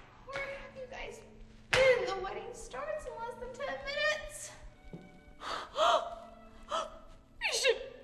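A young woman exclaims excitedly.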